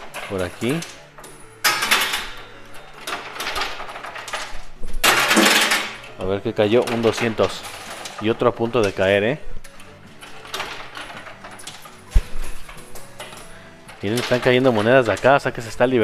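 Coins clink and slide as a machine's pusher shoves them along.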